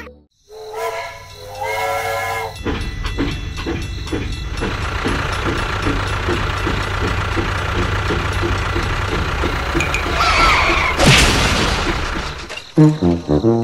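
A toy train chugs along its track with a steady rhythmic clatter.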